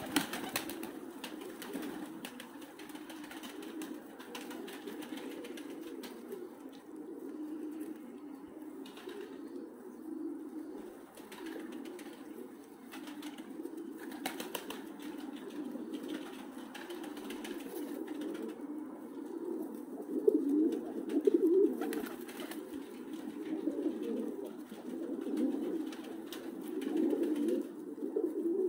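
A flock of pigeons coos steadily close by.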